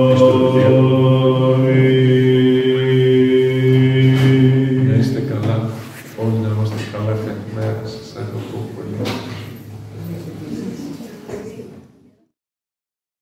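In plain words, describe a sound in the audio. An elderly man chants slowly through a microphone in an echoing room.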